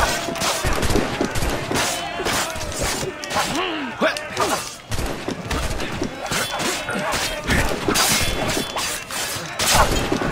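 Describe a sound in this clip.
Swords clash and ring in a fierce fight.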